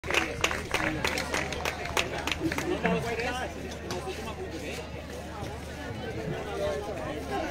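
A group of young women chant and shout together outdoors.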